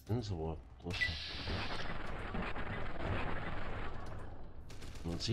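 A laser rifle fires with a loud crackling burst.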